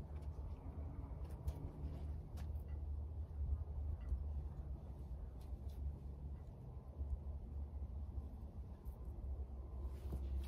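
A hand trowel scrapes and pats soft soil.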